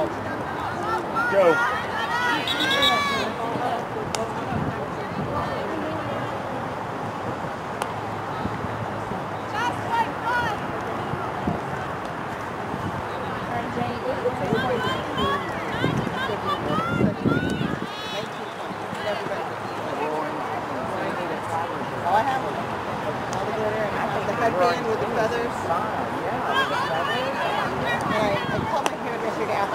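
A man shouts instructions outdoors, close by.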